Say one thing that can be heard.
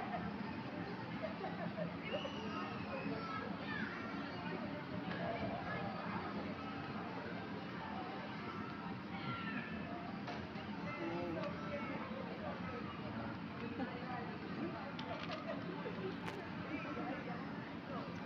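A woman and young children chatter and call out nearby.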